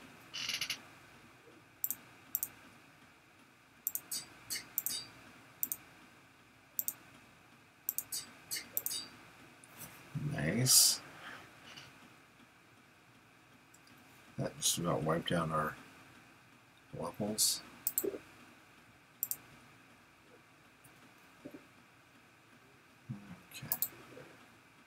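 Soft clicks sound as game items are picked up and placed.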